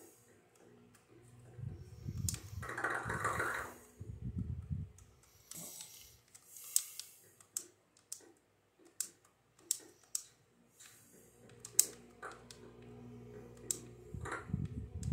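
Game blocks crunch and pop in short taps from a television speaker.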